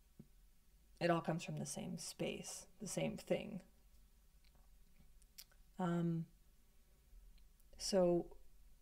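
A young woman speaks calmly and softly, close to a microphone.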